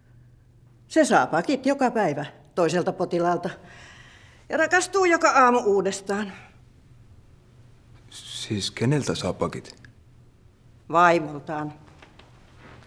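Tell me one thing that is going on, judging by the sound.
A middle-aged woman speaks plainly up close.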